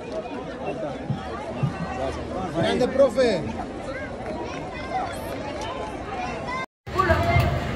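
A crowd of fans chatters and calls out nearby.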